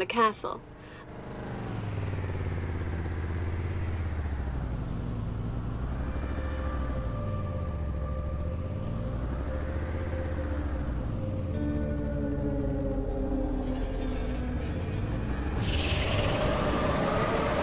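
A vehicle engine drones and revs up and down as it drives.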